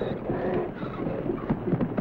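A man grunts.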